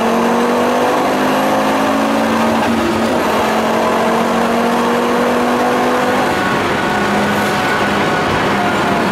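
A car engine roars loudly from inside the car at high speed.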